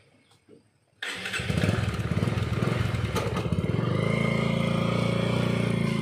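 A motorcycle engine starts and idles with a steady, rapid chug.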